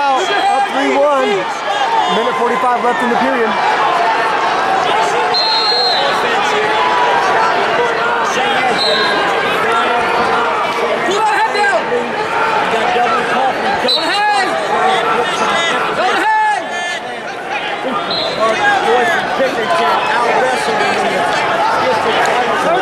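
A large crowd murmurs and shouts in a large echoing arena.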